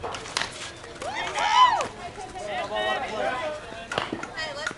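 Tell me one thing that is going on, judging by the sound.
Women shout and cheer outdoors at a distance.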